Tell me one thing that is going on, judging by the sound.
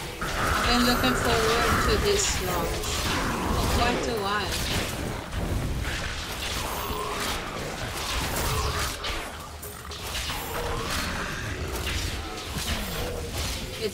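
Spells burst and crackle in a fast fight.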